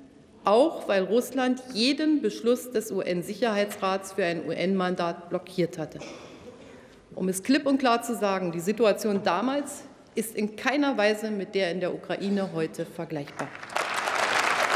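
A middle-aged woman speaks calmly into a microphone in a large hall.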